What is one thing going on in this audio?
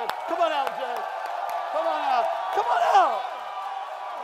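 A man shouts with excitement.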